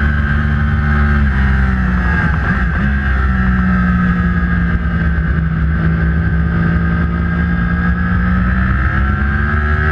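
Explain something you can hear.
A motorcycle engine roars loudly and steadily at high speed, its pitch dipping briefly as it shifts down.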